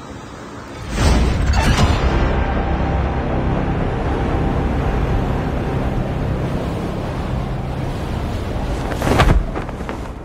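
Wind rushes loudly during a fast freefall.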